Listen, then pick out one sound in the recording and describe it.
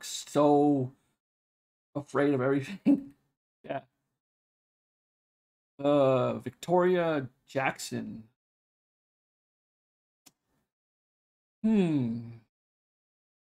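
A man talks with animation in short bursts through a microphone.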